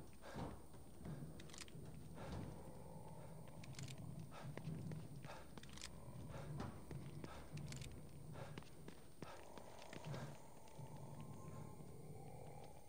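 A young man talks quietly.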